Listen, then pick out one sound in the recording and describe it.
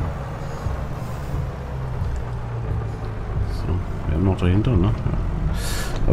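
A tractor engine rumbles steadily while driving.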